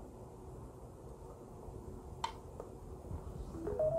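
A plug clicks into a socket.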